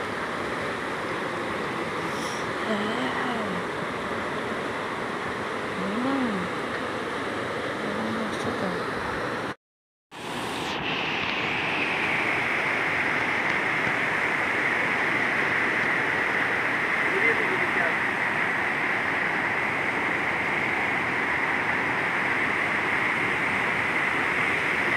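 Floodwater rushes and roars loudly.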